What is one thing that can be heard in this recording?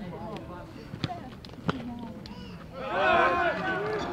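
A bat cracks against a baseball.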